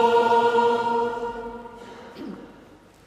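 A congregation sings a long final note in a large echoing hall.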